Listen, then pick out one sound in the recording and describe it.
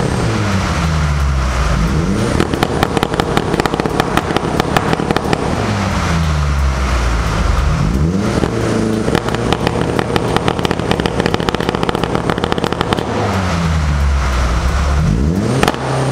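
A car engine revs hard again and again, rising and falling.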